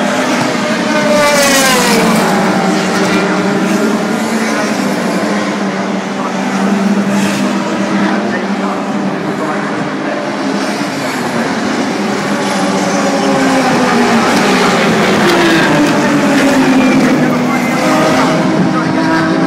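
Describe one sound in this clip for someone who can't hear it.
Racing car engines roar past on a track, rising and falling in pitch as they pass.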